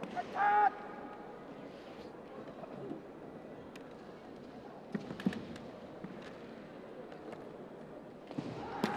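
A crowd murmurs softly in a large hall.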